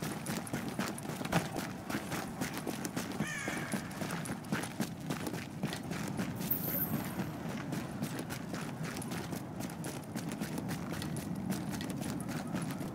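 Footsteps crunch quickly on snow.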